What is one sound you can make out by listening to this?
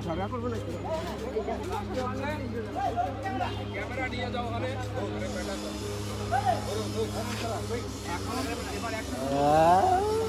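A young woman talks with animation.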